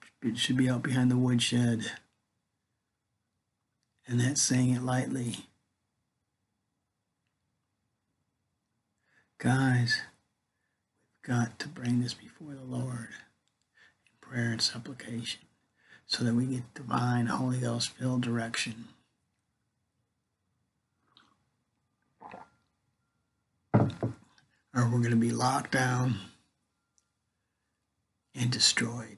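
An older man speaks calmly and close up, in short bursts with pauses.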